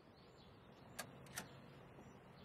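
A heavy door latch clicks twice.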